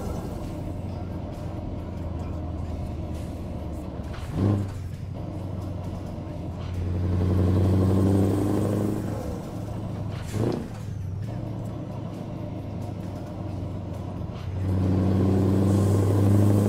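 A truck engine drones steadily, rising and falling as it accelerates.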